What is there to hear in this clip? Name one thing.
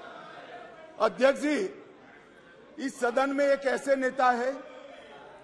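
A middle-aged man speaks loudly and forcefully in bursts.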